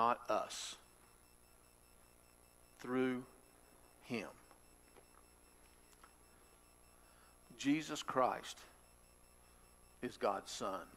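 A middle-aged man speaks calmly in short phrases into a microphone, pausing often.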